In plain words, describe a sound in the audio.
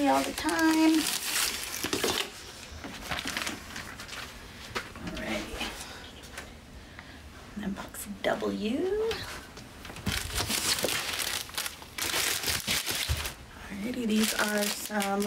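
A woman talks calmly and close by.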